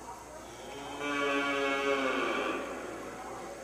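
A calf bawls loudly.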